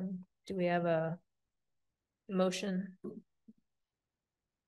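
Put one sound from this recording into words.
A woman speaks briefly through an online call, then falls silent.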